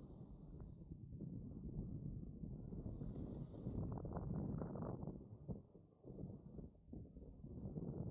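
A board scrapes and hisses over snow.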